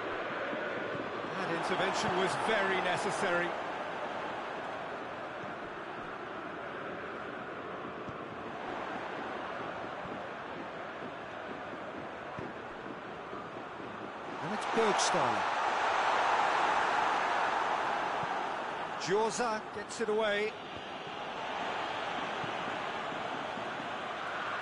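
A large stadium crowd roars steadily, swelling louder for a few seconds.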